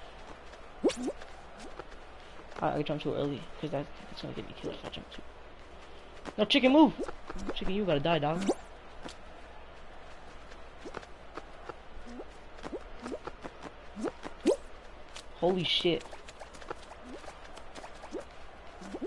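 Short cartoonish game sound effects pop and click.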